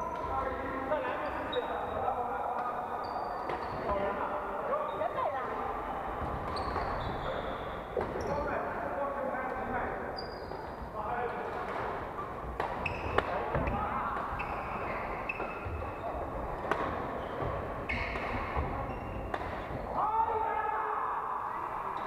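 Young men and women call out and chatter across the hall.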